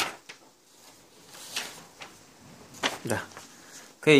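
Paper rustles as a sheet is laid down.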